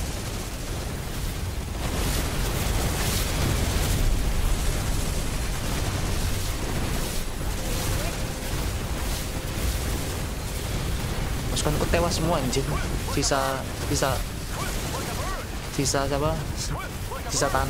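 Battle effects rumble and crash with a dense, steady roar.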